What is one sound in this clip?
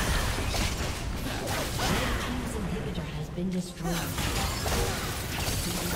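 Game spell effects crackle and burst during a busy fight.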